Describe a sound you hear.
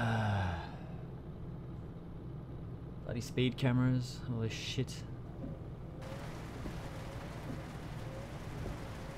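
A diesel truck engine drones while cruising.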